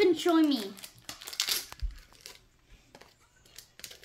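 Paper packets rustle and crinkle in a boy's hands.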